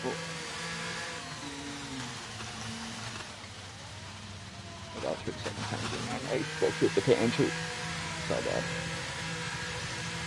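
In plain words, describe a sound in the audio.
A racing car engine whines steadily at high revs, then drops to a lower hum.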